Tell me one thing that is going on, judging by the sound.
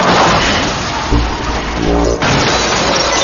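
A vehicle crashes and tumbles over with a heavy thud.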